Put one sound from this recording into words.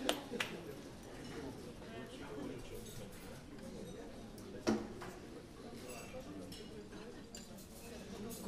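A band plays quietly in a room.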